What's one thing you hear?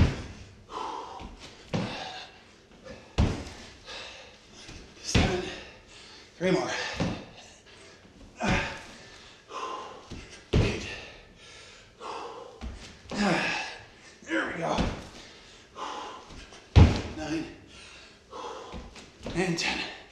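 Feet thump and land on a wooden floor again and again.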